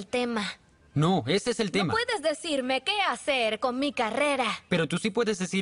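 A young woman answers angrily and close by.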